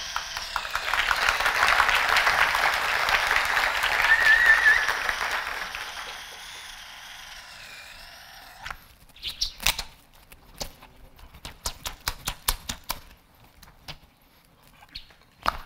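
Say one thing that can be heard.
A spinning toy whirs and clicks against its string.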